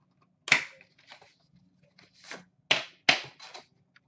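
A metal tin clanks as it is set down.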